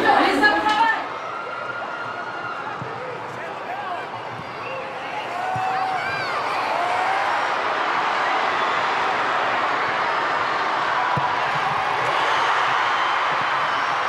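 A large stadium crowd murmurs and cheers in the distance, growing louder.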